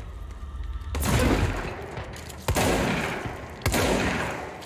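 An explosion booms.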